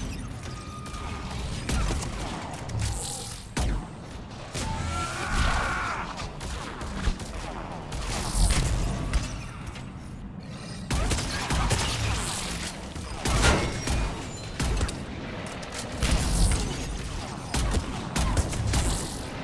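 Sci-fi gunfire cracks in bursts.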